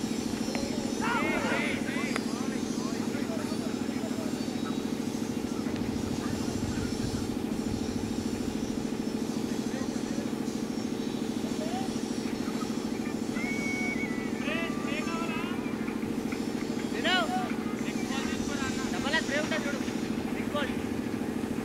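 Men call out and cheer from across an open field.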